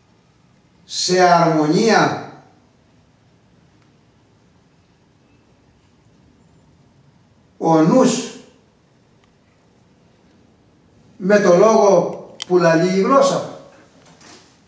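A man speaks loudly in short bursts close by.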